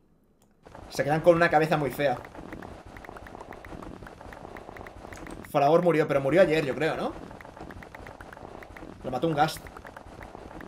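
A young man speaks excitedly into a close microphone in short bursts.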